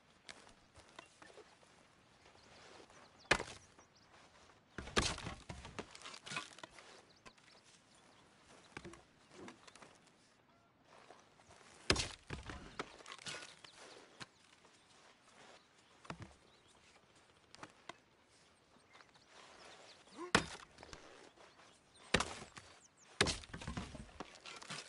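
An axe chops wood with sharp thuds.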